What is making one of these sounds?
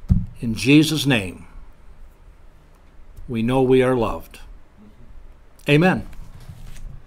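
A middle-aged man speaks calmly and slowly into a close microphone.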